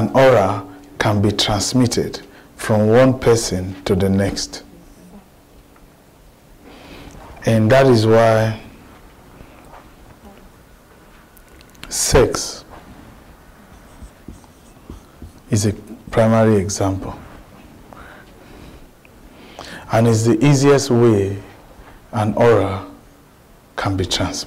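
A man speaks with animation to an audience, pausing between phrases.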